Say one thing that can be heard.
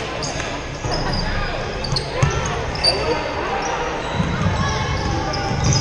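A basketball bounces on the wooden floor.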